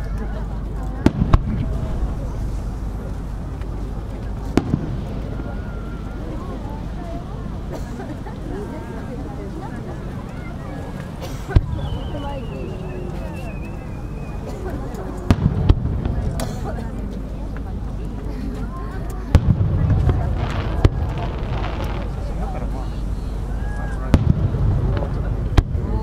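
Fireworks burst with loud booms that echo far off.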